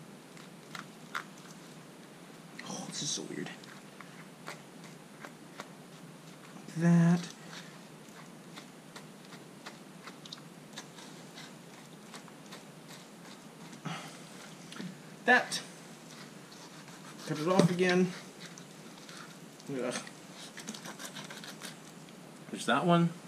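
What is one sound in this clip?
A knife slices and scrapes through a fish.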